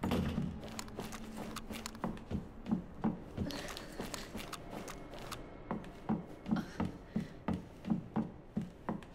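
Footsteps thud steadily on wooden stairs and then on a hard floor.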